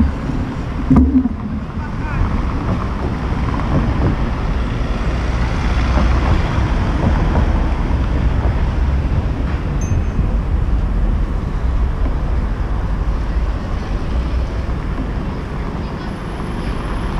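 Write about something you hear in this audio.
Cars drive past on a city street.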